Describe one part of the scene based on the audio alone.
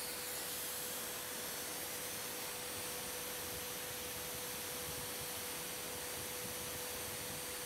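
A drill bit grinds against a sharpening stone.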